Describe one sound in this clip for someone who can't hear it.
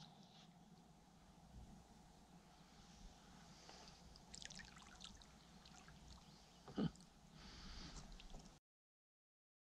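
Water laps softly against a small boat.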